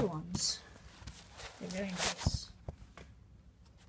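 A shoe knocks softly onto a wooden floor.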